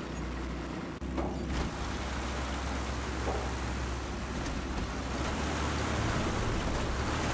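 A truck engine starts and idles with a low rumble.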